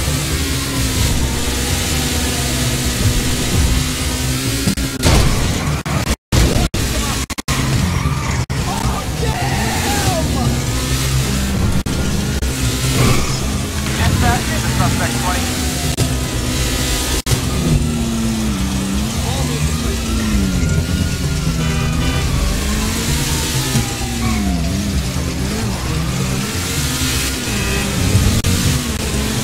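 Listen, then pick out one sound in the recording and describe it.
A sports car engine roars and revs as the car speeds along.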